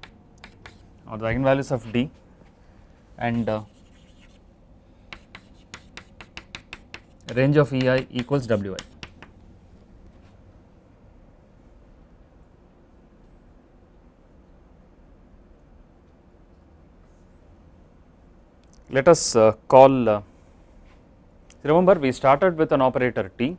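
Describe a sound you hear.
A man speaks calmly through a microphone, in short bursts.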